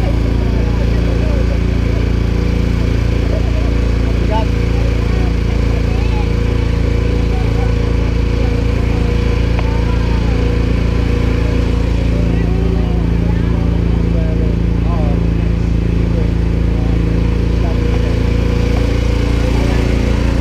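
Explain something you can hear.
A small open vehicle's motor hums steadily as it drives along a road.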